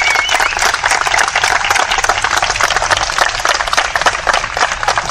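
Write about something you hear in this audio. A large crowd claps outdoors, dense and steady.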